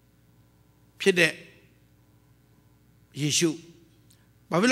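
A middle-aged man preaches loudly through a microphone in a large echoing hall, in short forceful bursts.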